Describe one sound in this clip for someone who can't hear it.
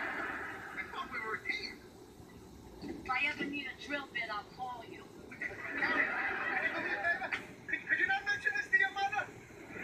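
A man speaks with animation through a television speaker.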